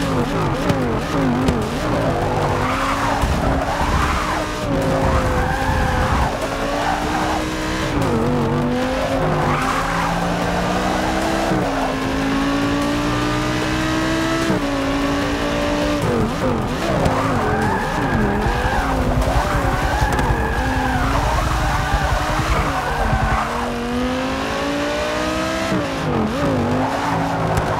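A racing car engine roars, revving up and down.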